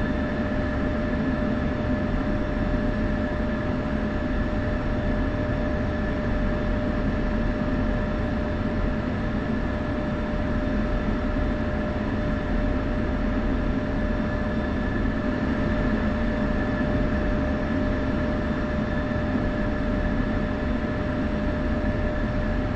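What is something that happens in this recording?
A jet engine hums and whines steadily at idle.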